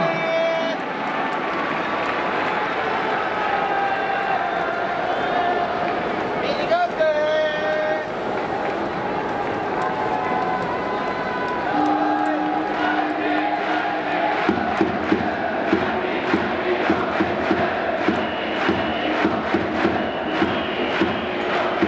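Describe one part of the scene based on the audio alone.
A large stadium crowd murmurs and chatters, echoing around a big hall.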